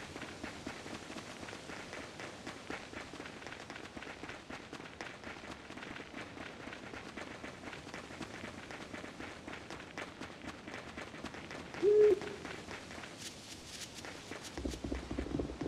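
Quick footsteps patter across soft ground.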